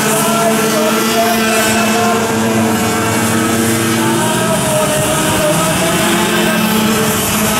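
Go-kart engines rise and fall in pitch as the drivers speed up and brake.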